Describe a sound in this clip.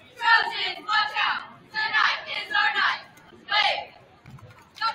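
Young women chant cheers loudly in unison in an echoing gym.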